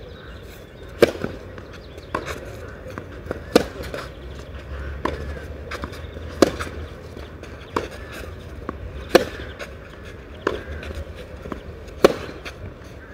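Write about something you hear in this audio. Tennis balls are struck back and forth in a rally with sharp pops.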